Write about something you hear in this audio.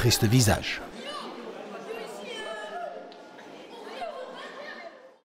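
Children shout and cheer excitedly in an echoing hall.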